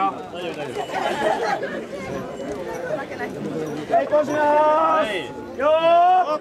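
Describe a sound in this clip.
A crowd of men and women chants and shouts together outdoors close by.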